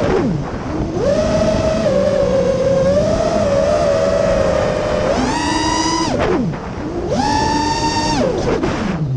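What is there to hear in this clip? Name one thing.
The motors of a small drone whine loudly, rising and falling in pitch as it speeds up and slows down.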